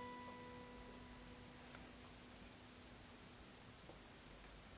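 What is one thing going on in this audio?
An acoustic guitar chord rings and slowly fades.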